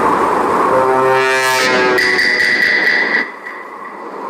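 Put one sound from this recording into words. A dramatic electronic sting rings out and fades.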